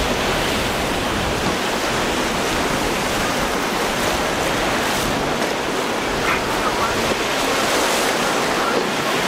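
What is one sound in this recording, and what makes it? A motorboat engine roars as the boat speeds over the waves.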